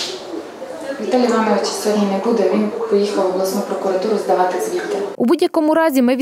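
A man speaks calmly across a room.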